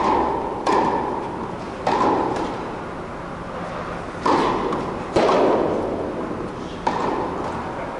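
A tennis ball is struck with a racket, each hit echoing in a large hall.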